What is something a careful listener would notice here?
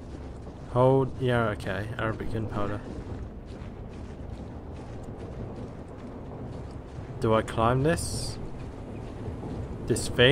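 Footsteps crunch through snow at a run.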